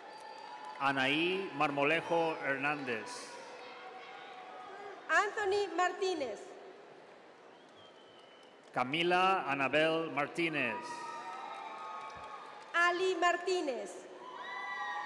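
A man reads out over a loudspeaker in a large echoing hall.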